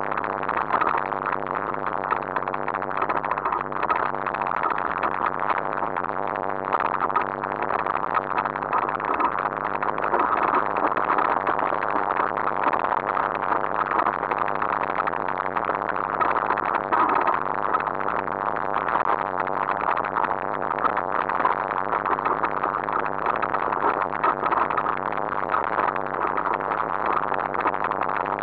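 Tyres crunch and rattle over a rough dirt trail.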